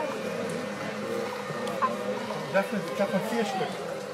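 Water splashes as a man wades beside a model boat.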